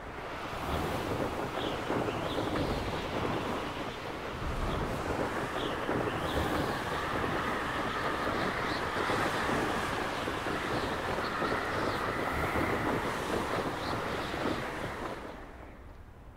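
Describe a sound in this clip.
Wind rushes loudly past a figure flying fast.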